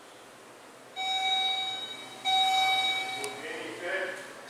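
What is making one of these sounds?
An elevator chime rings twice with a bright ding.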